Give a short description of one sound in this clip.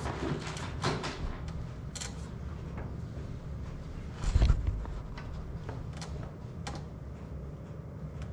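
Plastic pipes knock and rattle close by as they are handled.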